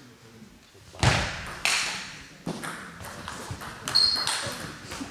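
A table tennis ball clicks back and forth between paddles and table in a large echoing hall.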